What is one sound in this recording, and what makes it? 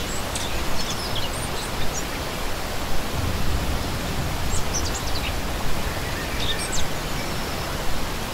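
A stream rushes and splashes steadily over rocks.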